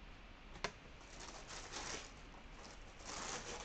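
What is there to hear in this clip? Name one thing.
Plastic packaging rustles up close.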